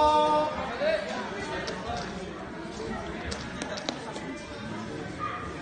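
A crowd chatters and calls out in a large echoing hall.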